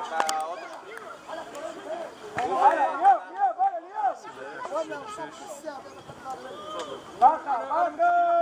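Young boys shout to each other outdoors.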